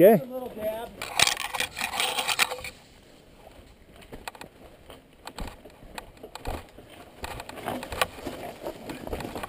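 A mountain bike rattles as it jolts over rocks.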